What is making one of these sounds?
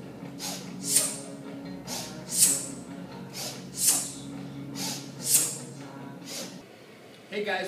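A man exhales sharply in a steady rhythm.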